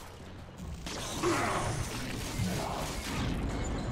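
A fiery blast roars.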